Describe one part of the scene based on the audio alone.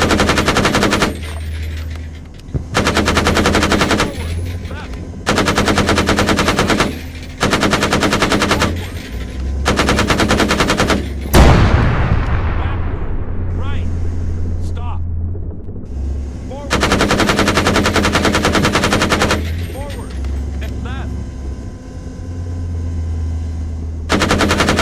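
A heavy gun fires in rapid, loud bursts.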